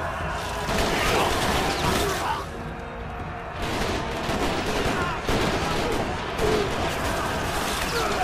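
Swords clash in a fight.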